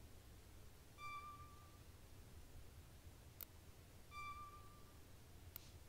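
A short electronic menu tone beeps.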